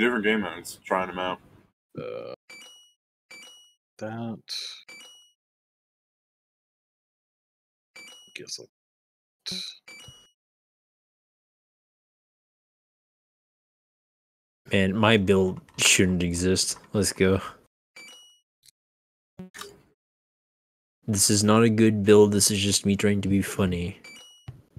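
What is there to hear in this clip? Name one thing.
Short electronic chimes play as game upgrades are bought.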